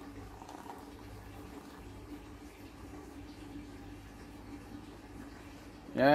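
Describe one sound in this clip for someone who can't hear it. Frothy milky coffee pours into a glass jar.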